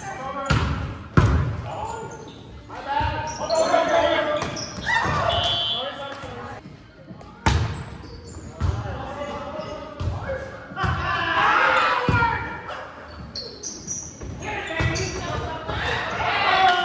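Young men call out and shout to each other in a large echoing gym.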